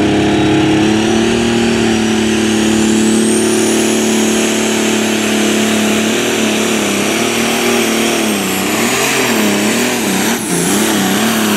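A tractor engine roars loudly at full power, its pitch wavering as it strains.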